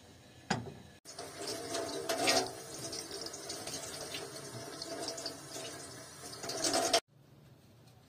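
Water runs from a tap and splashes.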